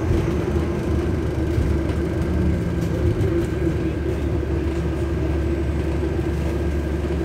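The engine of a double-decker bus drones as it drives, heard from inside.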